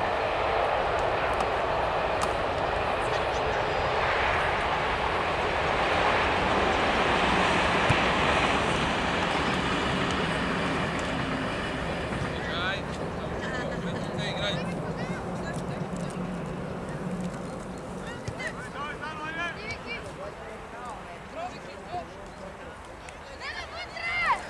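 Wind rushes steadily outdoors, easing off over time.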